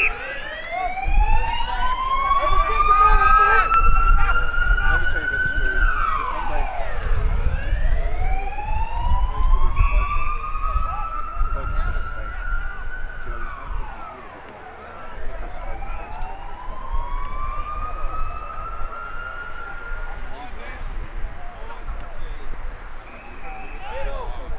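Footballers call out to each other across an open field.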